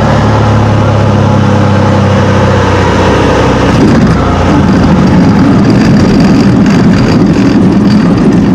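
A single-engine piston propeller plane drones at high power.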